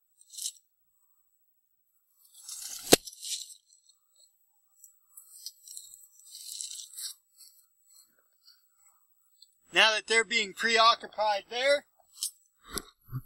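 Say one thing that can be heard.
Chickens scratch and peck in dry litter.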